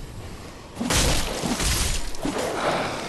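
A blade strikes flesh with a wet slash.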